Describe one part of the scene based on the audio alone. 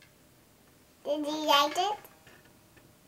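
A young girl speaks brightly up close.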